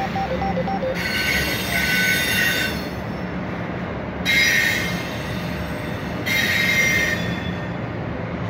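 Train wheels screech on the rails in high bursts.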